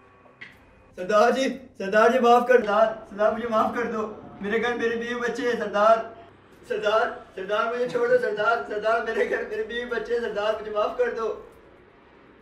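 A young man cries and pleads loudly in anguish.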